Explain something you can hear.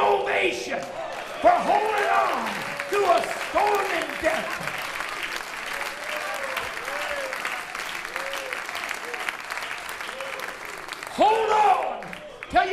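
An elderly man preaches loudly and with passion through a microphone in a large echoing hall.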